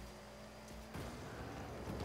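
A game ball explodes with a booming blast.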